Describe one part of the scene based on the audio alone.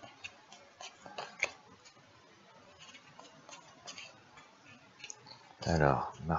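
Playing cards riffle and flick softly as a person shuffles a deck.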